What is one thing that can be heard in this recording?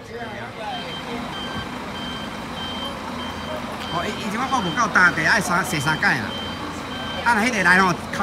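A bus engine idles with a low steady rumble.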